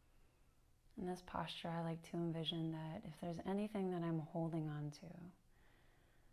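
A woman speaks calmly and softly into a close microphone.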